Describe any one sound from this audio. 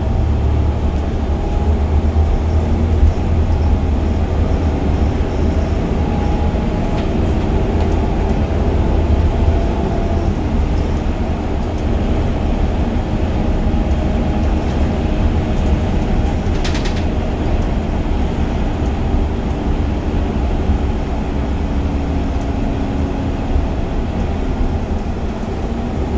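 A large engine rumbles steadily as it drives along.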